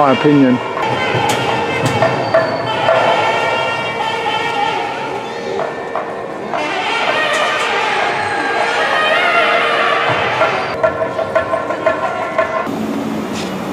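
A crowd murmurs in a large echoing space.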